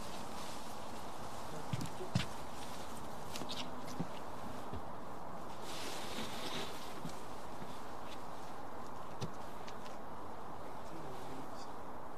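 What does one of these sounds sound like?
A heavy cloth covering rustles as it is dragged over grass.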